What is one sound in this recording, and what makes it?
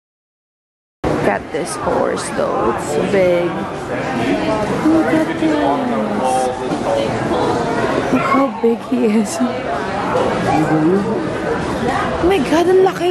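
Children and adults chatter excitedly close by.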